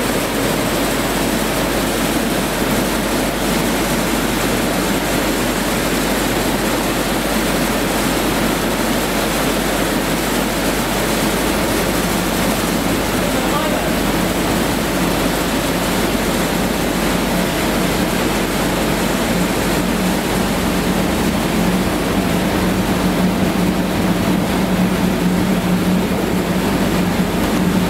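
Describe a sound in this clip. A chain rattles as it runs along a conveyor.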